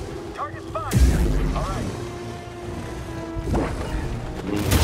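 A lightsaber ignites with a loud hum and buzz.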